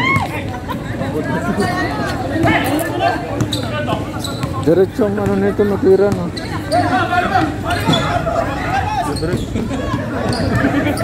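Young men shout and call out across an outdoor court.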